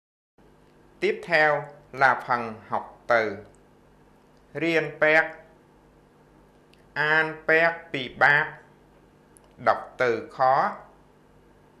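A man speaks calmly and clearly into a microphone, pausing between words.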